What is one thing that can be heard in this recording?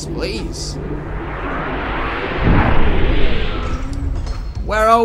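A magical shimmering chime swells and fades in a game.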